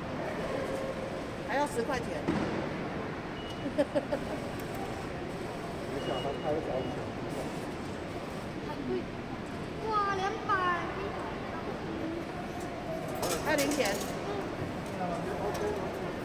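Adults and children talk quietly nearby.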